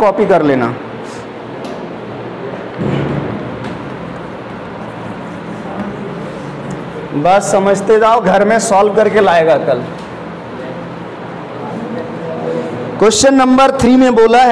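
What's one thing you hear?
A man speaks nearby in a calm lecturing voice.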